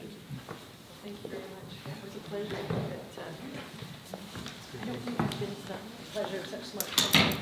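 Several men and women chat casually nearby in a room with a slight echo.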